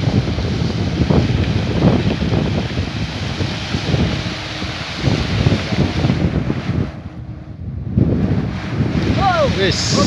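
Water splashes as a net is hauled out of a pond.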